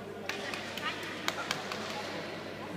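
Shuttlecocks are struck with rackets in sharp pops, echoing in a large hall.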